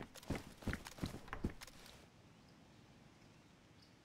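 A metal cabinet door clicks open.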